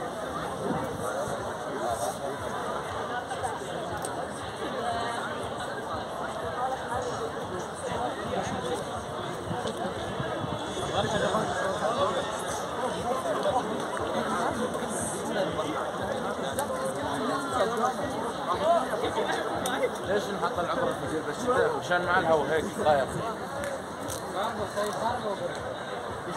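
A large outdoor crowd chatters in a dense, distant murmur of many voices.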